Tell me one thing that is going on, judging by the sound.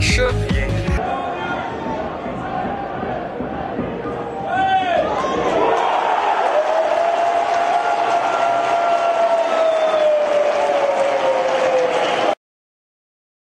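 A crowd cheers in a stadium outdoors.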